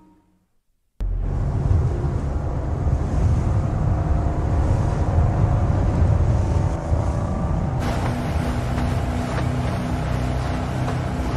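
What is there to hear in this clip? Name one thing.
Water rushes and splashes against a speeding boat's hull.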